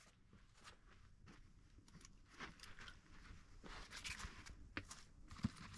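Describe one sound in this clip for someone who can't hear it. Feet shuffle and rustle on a fabric mat.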